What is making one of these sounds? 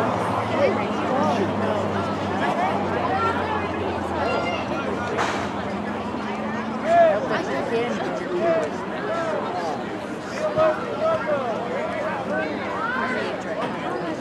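A crowd of young men and boys chatter and call out outdoors.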